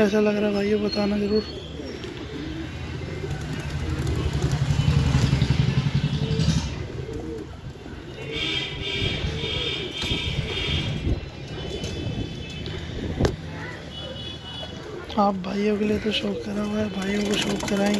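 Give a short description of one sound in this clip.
Pigeons coo with low, throaty rumbling.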